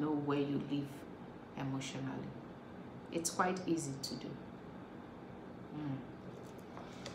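A woman speaks calmly and close up, in short phrases.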